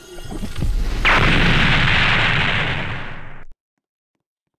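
A magic blast bursts with a loud roaring whoosh.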